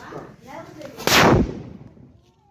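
A firecracker bursts with a loud bang.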